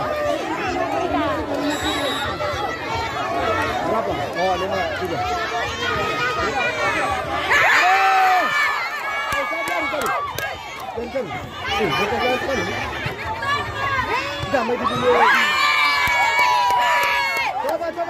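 A large outdoor crowd of spectators chatters and shouts.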